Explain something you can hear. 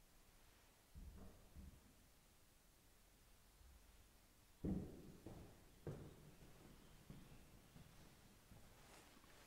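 Footsteps knock on a hard floor in a large echoing hall.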